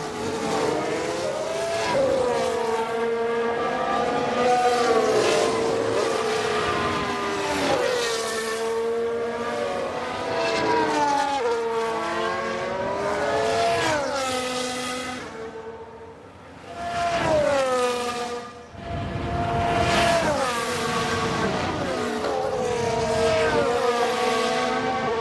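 A racing car engine screams past, its pitch rising and dropping sharply through gear changes.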